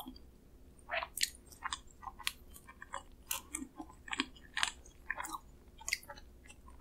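Fingers tear and pick at a soft pastry with sticky, crackling sounds.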